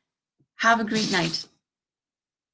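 A young woman speaks briefly and calmly, close to the microphone.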